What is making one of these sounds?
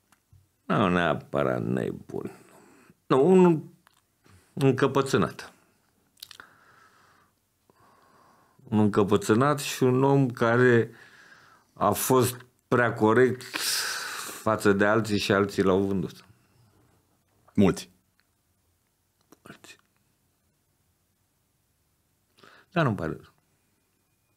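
A middle-aged man speaks with animation into a close microphone, pausing often.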